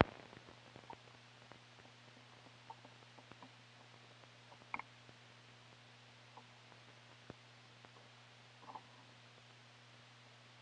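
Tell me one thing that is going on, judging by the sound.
A turntable hums steadily.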